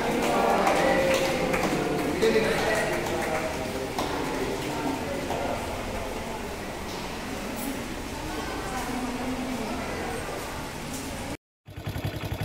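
A crowd of men and women talks and cheers nearby.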